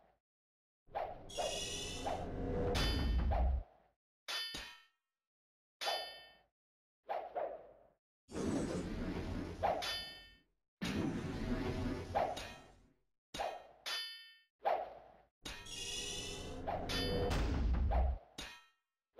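Swords strike in a video game fight.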